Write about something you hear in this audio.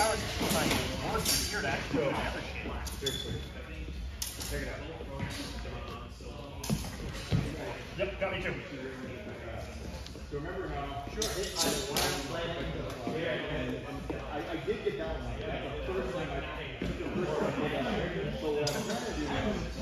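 Shoes squeak and thud on a wooden floor.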